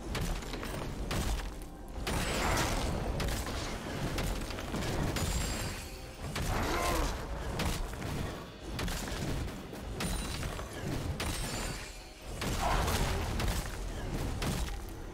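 Computer game combat effects clash and thud.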